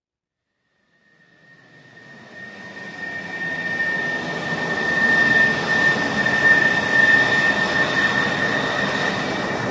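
A jet airliner roars steadily in flight.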